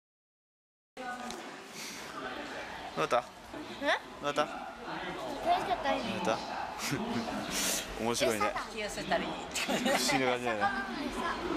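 A young boy talks with animation close by.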